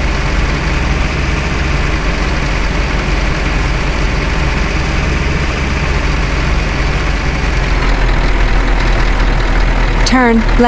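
A truck engine drones steadily as it drives along a road.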